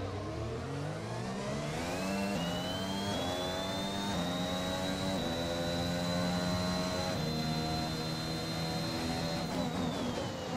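A Formula One car engine accelerates through upshifts.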